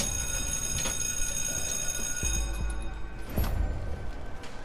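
A metal hand press thumps down with a clank.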